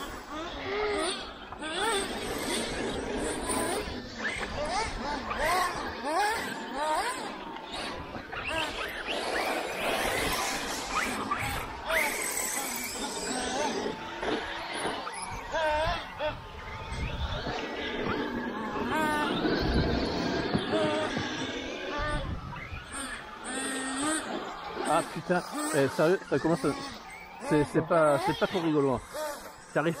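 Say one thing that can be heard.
Small electric model cars whine and rev, rising and falling in pitch as they race.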